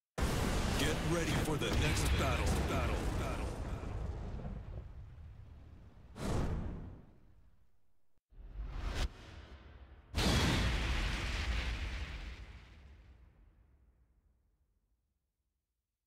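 Flames roar with a loud whoosh and slowly fade.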